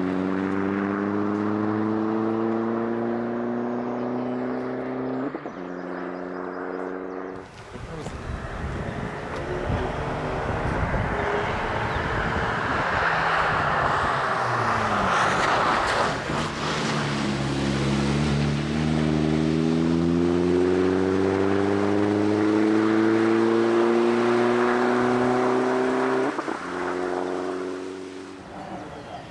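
A racing car engine roars loudly and climbs in pitch as it accelerates.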